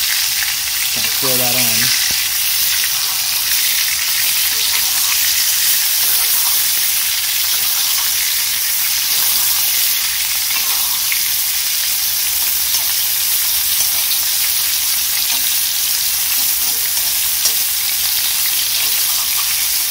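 A metal spoon scrapes and clinks against an iron pan.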